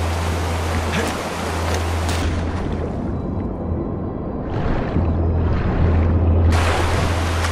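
Water splashes as a swimmer strokes through it.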